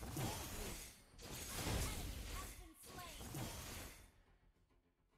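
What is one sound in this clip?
Video game combat effects crash with magic blasts and hits.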